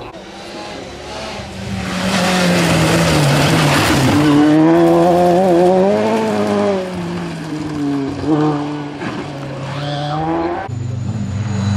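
A rally car engine roars loudly as it speeds past and accelerates away.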